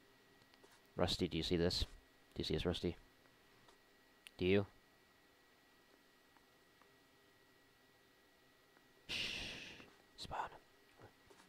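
A man speaks calmly nearby in short phrases.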